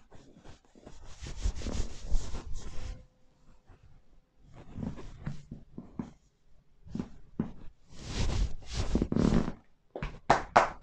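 Hands rub briskly over fabric on a person's back.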